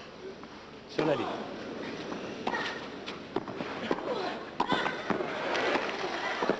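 A crowd in the stands murmurs and applauds.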